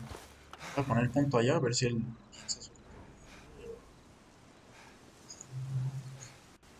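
A young man speaks casually into a microphone.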